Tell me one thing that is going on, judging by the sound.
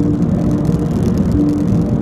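Another car passes close by.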